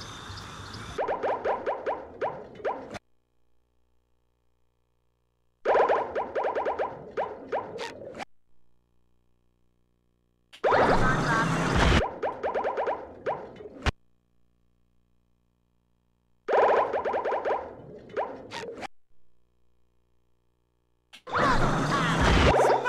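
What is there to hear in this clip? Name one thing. Bright musical chimes ring out in short bursts, with silent gaps between.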